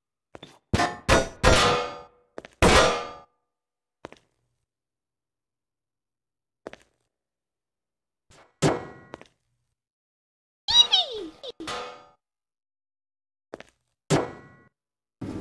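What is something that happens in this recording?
A metal chair clatters and bangs as it tumbles across a tiled floor.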